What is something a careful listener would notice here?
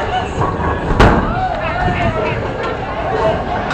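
A bowling ball rumbles as it rolls down a lane.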